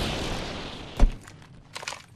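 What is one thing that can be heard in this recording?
A heavy thud lands.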